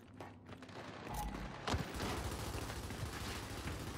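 Heavy boots thud quickly on a hard floor.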